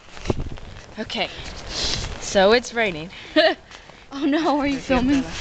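A young woman talks playfully and close by.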